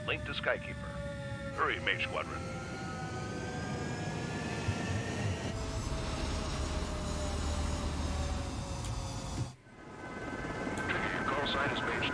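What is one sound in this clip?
A man talks into a microphone in short bursts.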